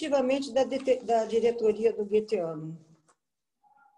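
A woman speaks calmly through a microphone, as on an online call.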